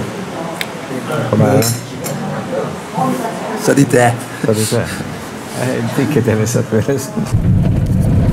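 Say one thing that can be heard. A young man talks close by, calmly.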